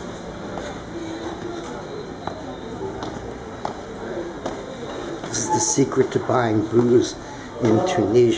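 Footsteps tread slowly down concrete stairs.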